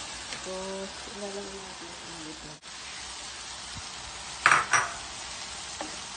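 A wooden spoon scrapes and stirs food in a pan.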